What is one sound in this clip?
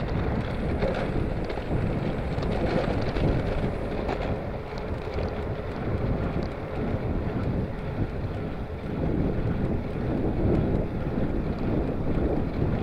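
Wind buffets loudly outdoors as a bicycle rides along.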